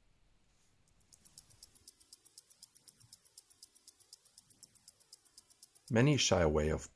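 A watch ticks rapidly and evenly up close.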